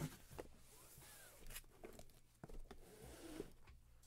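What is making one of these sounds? Cardboard boxes bump and slide against each other as they are stacked.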